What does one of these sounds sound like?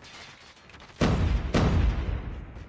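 Gunshots ring out in bursts.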